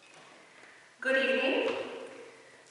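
A man speaks into a microphone in a large echoing room.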